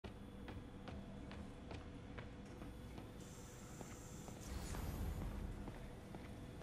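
Footsteps of a man walk across a hard floor at a steady pace.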